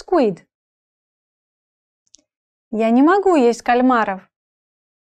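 A woman speaks clearly and calmly into a close microphone.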